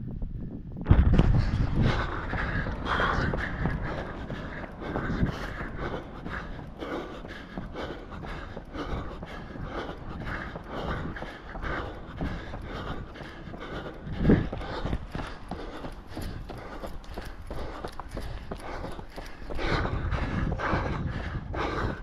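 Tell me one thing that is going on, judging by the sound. A man breathes heavily while running.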